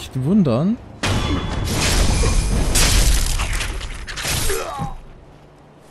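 A sword slashes and strikes.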